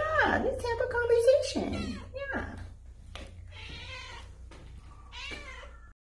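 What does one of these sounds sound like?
A cat meows repeatedly, close by.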